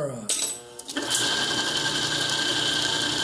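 A lathe motor starts up and hums steadily with a high whine.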